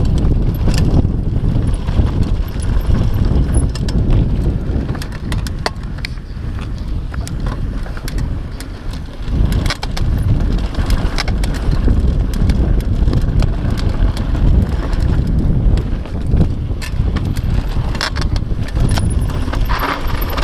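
A bike's frame and chain clatter over bumps.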